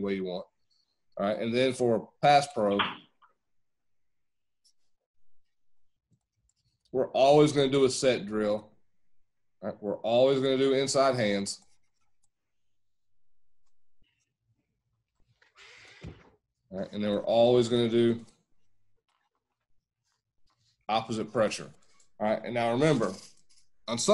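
A man speaks calmly through a microphone, explaining in short bursts with pauses.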